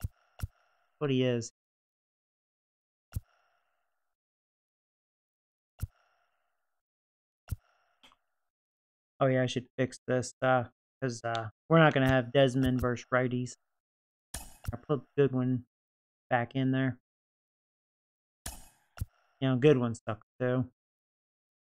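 A man speaks casually and with animation into a close microphone.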